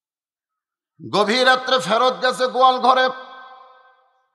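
An elderly man speaks with feeling into a microphone over loudspeakers, his voice echoing.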